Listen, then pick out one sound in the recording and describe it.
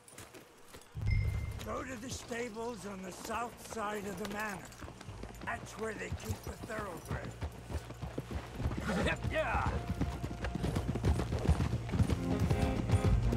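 Horses' hooves thud on a dirt track.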